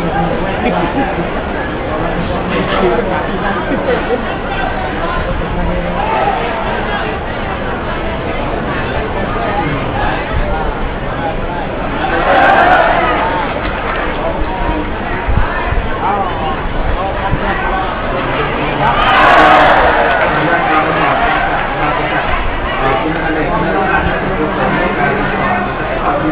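A large crowd chatters and murmurs throughout in a big echoing arena.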